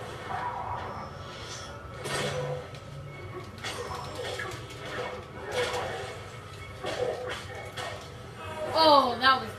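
Punches and kicks land with heavy thuds in a video game fight.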